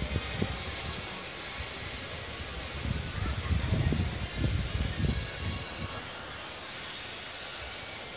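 Footsteps pass close by on hard pavement outdoors.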